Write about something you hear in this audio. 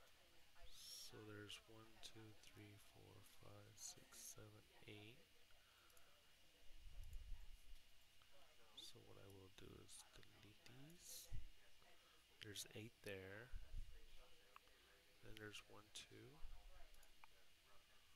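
A young man talks calmly over an online call with a headset microphone.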